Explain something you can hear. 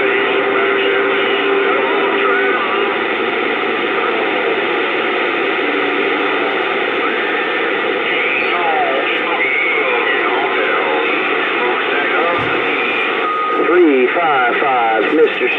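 A radio hisses with loud static and warbling, garbled voices from a distant transmission.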